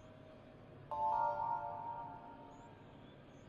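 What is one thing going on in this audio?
A short electronic chime rings out, then fades.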